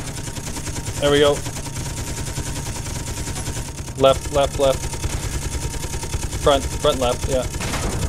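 A rapid-fire gun rattles in quick bursts.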